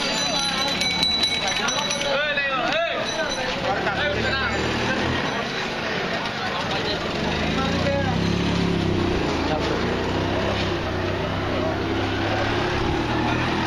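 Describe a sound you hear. Several men talk at once nearby, outdoors.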